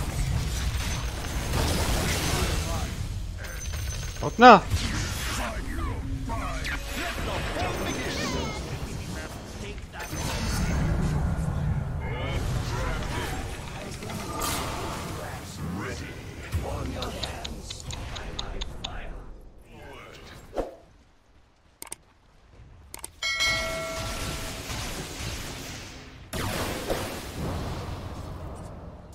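A young man talks with animation into a microphone.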